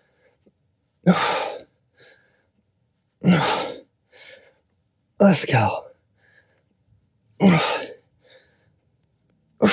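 A man breathes out forcefully in a steady rhythm, close by.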